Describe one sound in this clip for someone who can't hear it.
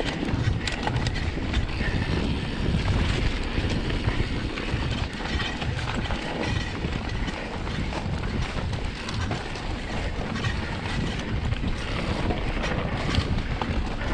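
Bicycle tyres rumble and rattle over a bumpy grass track.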